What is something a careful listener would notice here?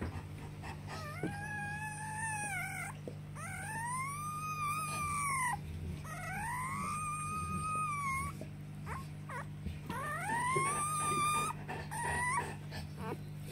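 A newborn puppy whines and squeals in long, high cries close by.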